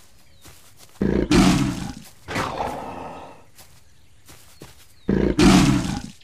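A tiger growls and roars loudly in short bursts.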